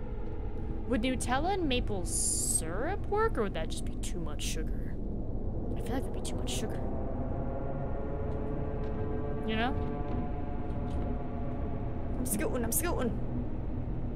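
A young woman speaks close to a microphone, now and then.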